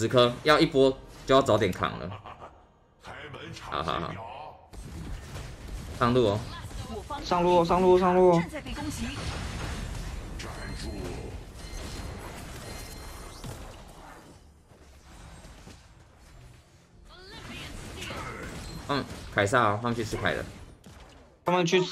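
Game sound effects whoosh and clash.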